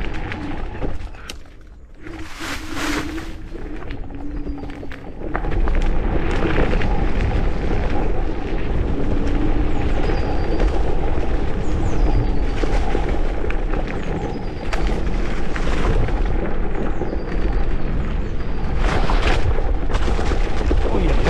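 Bicycle tyres crunch and rattle over a gravel trail.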